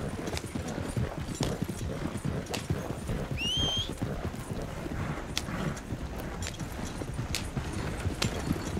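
Horse hooves clop steadily on soft ground.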